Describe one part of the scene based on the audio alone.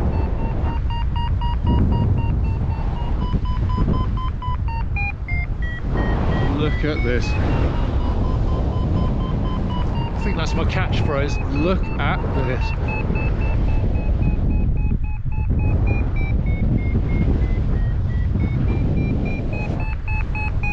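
A flight instrument beeps in quick steady pulses, its pitch rising and falling.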